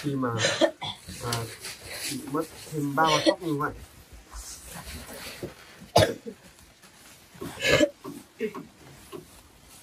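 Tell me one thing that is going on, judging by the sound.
A plastic sack rustles and crinkles as it is handled.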